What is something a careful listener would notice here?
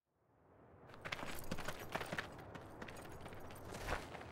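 Footsteps crunch on a dirt ground.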